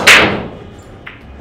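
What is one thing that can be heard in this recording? A cue strikes a billiard ball with a sharp clack.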